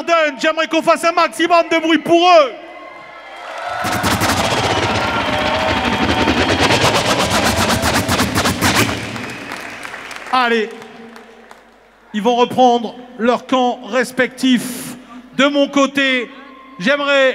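A man shouts excitedly through a loudspeaker.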